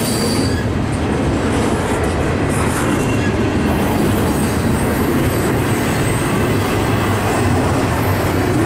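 Train wheels clatter and squeal faintly on the rails.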